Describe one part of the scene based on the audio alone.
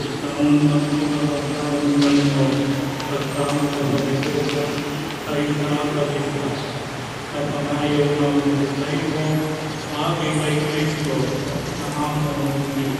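An elderly man chants steadily through a microphone, echoing in a large hall.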